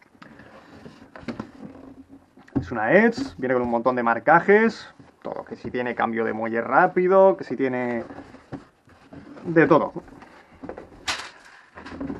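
Hands shuffle and knock against a cardboard box.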